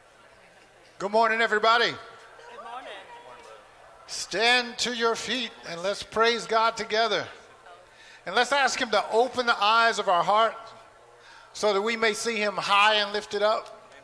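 A man sings loudly through a microphone in a large echoing hall.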